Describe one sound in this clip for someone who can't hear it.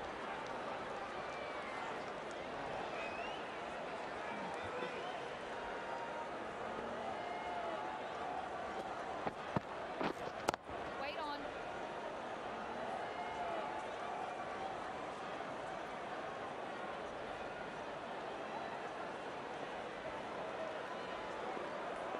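A large crowd murmurs and cheers steadily.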